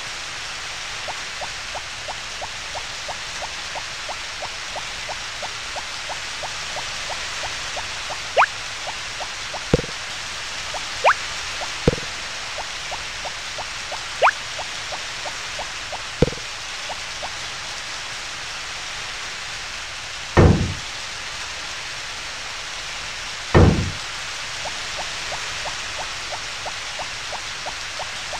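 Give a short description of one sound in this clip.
Quick footsteps tap along the ground.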